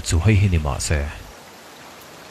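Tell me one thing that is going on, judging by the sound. A man speaks in a low, steady voice.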